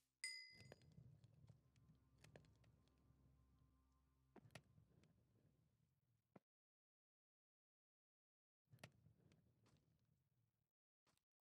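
Soft game menu clicks sound now and then.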